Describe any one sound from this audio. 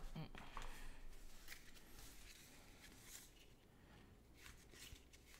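Playing cards rustle and slide against each other in a hand.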